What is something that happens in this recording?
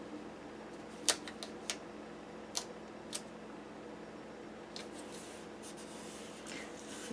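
Paper taps and clicks as a page is pressed and peeled.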